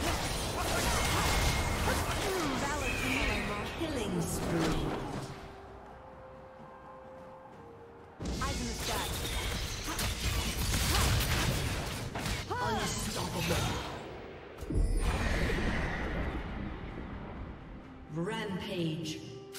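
Game combat effects clash and burst in quick flurries.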